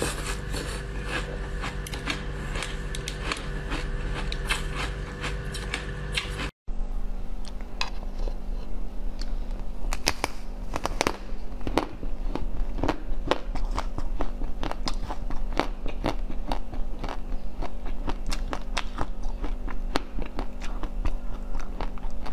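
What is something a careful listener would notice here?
A young woman crunches and chews food loudly, close to a microphone.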